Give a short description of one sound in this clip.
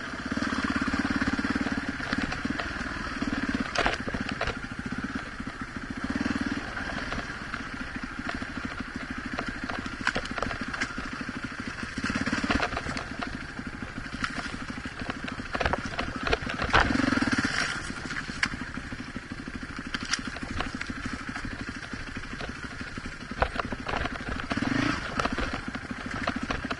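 A dirt bike engine runs close by, revving up and down throughout.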